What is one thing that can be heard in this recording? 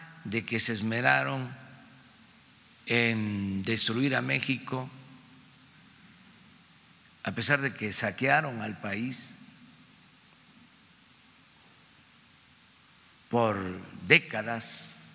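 An elderly man speaks calmly into a microphone, with long pauses between phrases.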